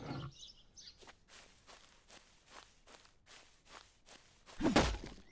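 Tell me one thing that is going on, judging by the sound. Footsteps crunch over grass.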